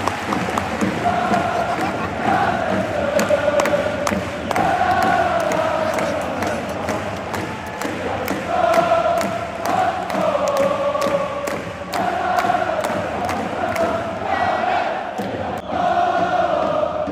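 A large stadium crowd chants loudly in unison, echoing around the stands.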